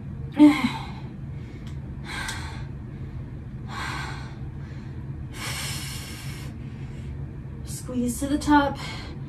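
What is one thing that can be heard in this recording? A young woman breathes out hard in steady bursts.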